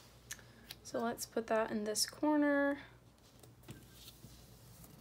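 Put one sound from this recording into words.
A sticker is pressed and rubbed onto paper with a soft rustle.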